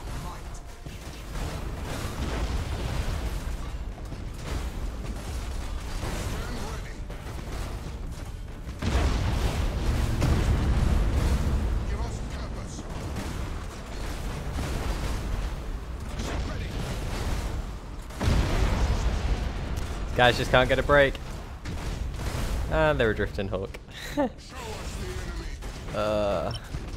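Spaceship weapons fire and explosions boom with a deep rumble.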